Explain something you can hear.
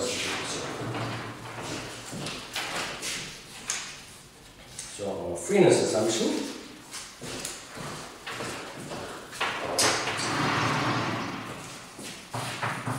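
An older man lectures calmly in an echoing room.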